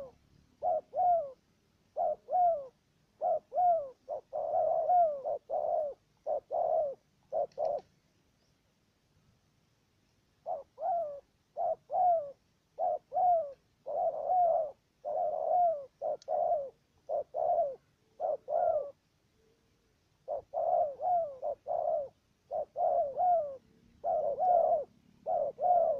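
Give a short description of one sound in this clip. Doves call close by in short, quick bursts, again and again.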